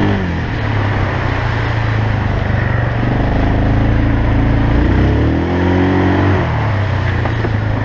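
Water and mud splash under wheels.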